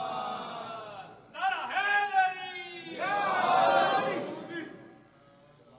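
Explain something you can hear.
A man chants in a drawn-out voice through a microphone in an echoing hall.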